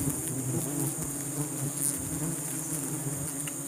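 Sticky honeycomb tears and squelches.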